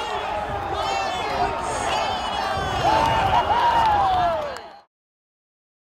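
A crowd of young men shouts and cheers loudly.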